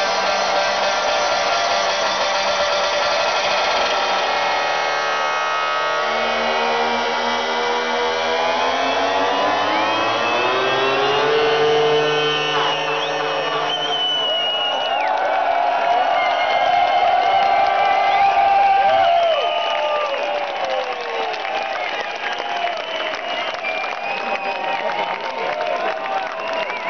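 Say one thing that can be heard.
Loud electronic dance music plays over loudspeakers in a huge echoing hall, building up in pitch.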